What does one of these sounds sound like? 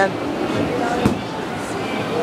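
A ball thumps into a net.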